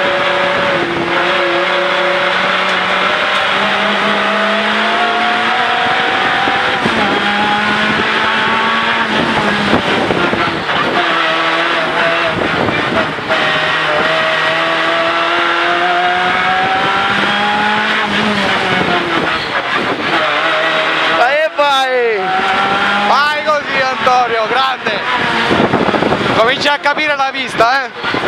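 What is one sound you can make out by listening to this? A race car engine roars loudly from inside the cabin, revving up and dropping with each gear change.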